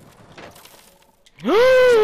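Pine branches rustle as a figure pushes through them.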